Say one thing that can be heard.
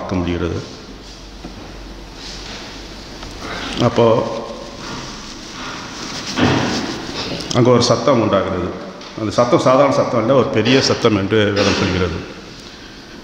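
A middle-aged man speaks calmly through a microphone in an echoing room.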